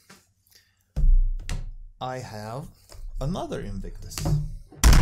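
A cardboard box slides and knocks on a wooden table.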